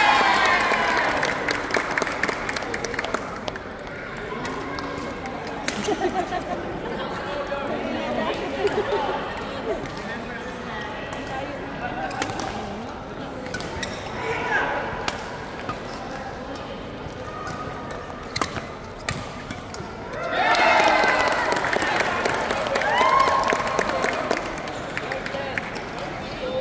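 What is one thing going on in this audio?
Players' shoes squeak on the court floor.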